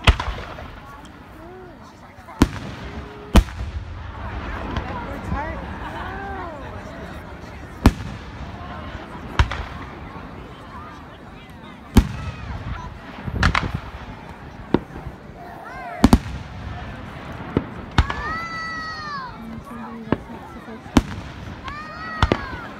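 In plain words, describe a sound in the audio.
Fireworks rockets whistle as they shoot upward.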